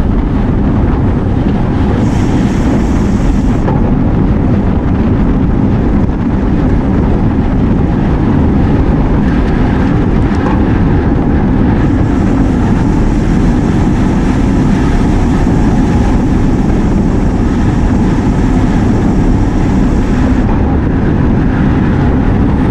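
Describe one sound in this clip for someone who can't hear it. Bicycle tyres hum on pavement.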